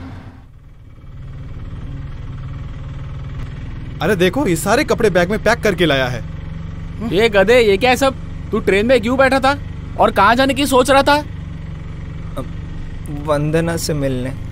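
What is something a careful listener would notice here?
An auto rickshaw engine rumbles steadily.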